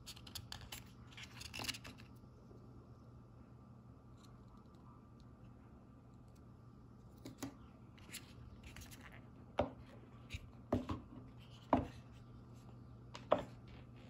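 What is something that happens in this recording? Cardboard packaging rustles and scrapes as it is handled.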